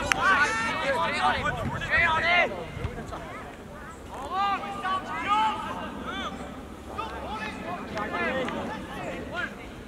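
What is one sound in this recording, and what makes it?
Young men shout loudly to one another outdoors across an open field.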